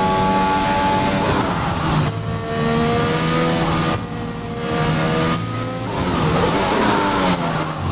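A racing car engine screams loudly, its pitch rising and falling as gears shift.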